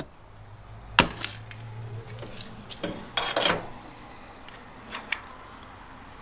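A fuel nozzle clunks into a tank filler.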